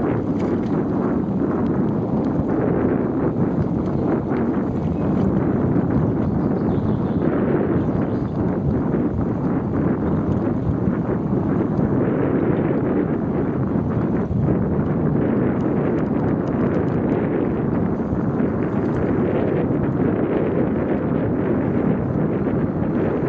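Tyres roll steadily over a paved path.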